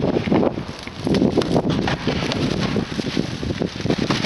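Plastic wrapping rustles and crinkles close by.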